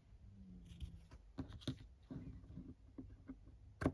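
Scissors snip through ribbon.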